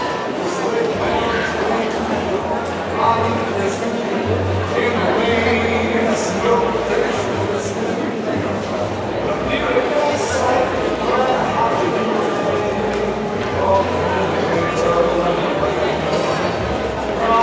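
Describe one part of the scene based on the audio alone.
A crowd of diners chatters in the background.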